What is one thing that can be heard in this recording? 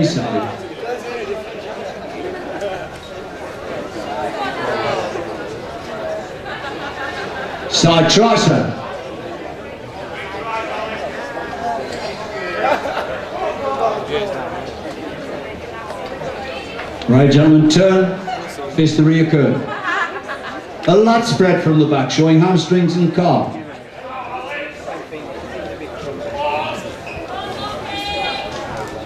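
A crowd murmurs and calls out in a large hall.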